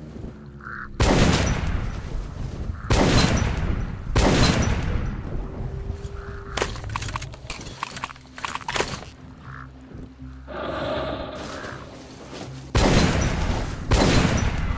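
A rifle fires loud single shots that boom and echo outdoors.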